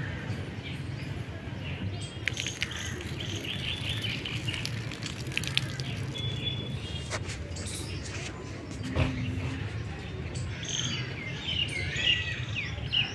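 A woman winds a thread around a tree trunk, and the thread rubs faintly against the bark.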